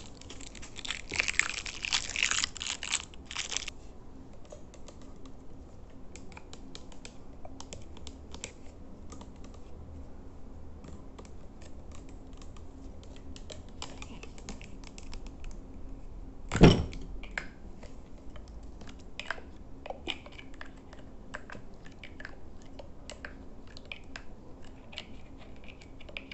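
Plastic bottles clatter and tap on a hard surface.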